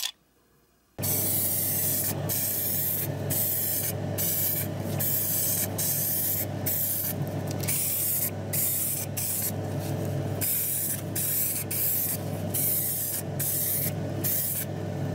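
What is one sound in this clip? A spray can hisses in short, repeated bursts.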